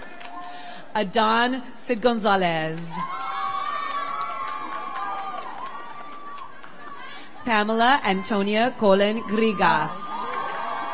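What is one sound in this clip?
An audience cheers and whoops loudly.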